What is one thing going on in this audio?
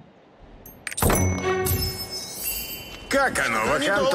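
A bright game chime rings out.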